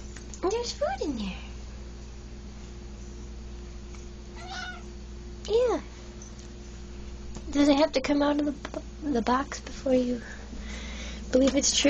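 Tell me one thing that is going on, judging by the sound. A cat meows loudly and repeatedly, close by.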